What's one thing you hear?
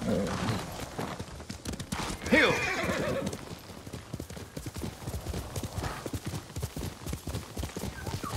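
A horse's hooves pound the ground at a gallop.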